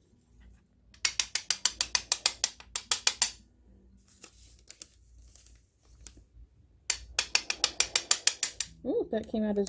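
A small metal spoon taps rapidly.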